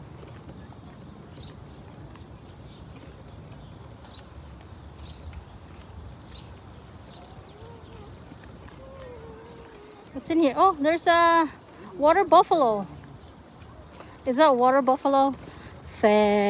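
Stroller wheels roll and crunch over a gravel path.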